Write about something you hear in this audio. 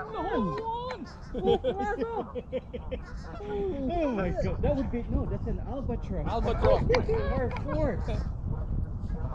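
Men talk and laugh nearby outdoors.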